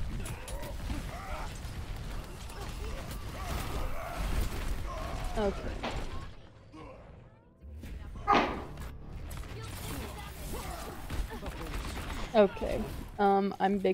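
Guns fire rapidly in a close fight.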